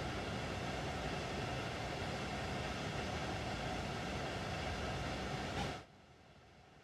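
A train rumbles past close by on the tracks.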